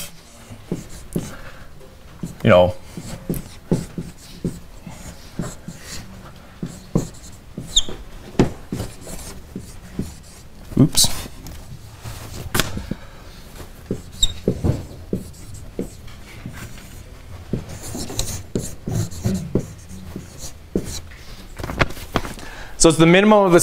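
A man speaks calmly, lecturing in a large room.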